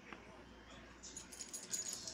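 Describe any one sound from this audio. A dog sniffs close by.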